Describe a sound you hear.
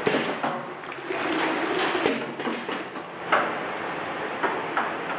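A filling machine whirs and clatters steadily.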